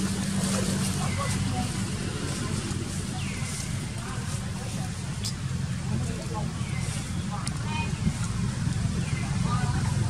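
A baby monkey squeaks softly nearby.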